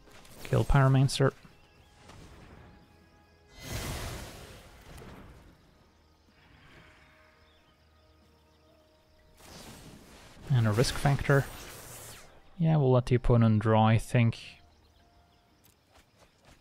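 A game chimes and whooshes as a card is played.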